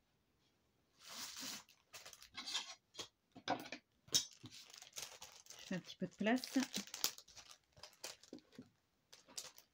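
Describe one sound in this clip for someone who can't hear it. Stiff paper rustles and taps close by.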